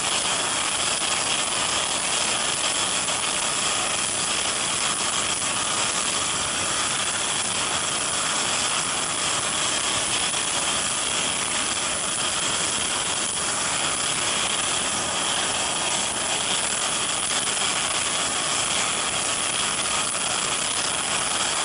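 A heavy hydraulic ramp whirs as it slowly lowers.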